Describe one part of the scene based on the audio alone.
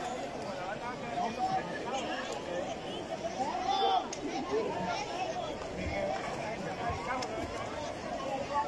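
A large crowd of men and women chatters and shouts loudly outdoors.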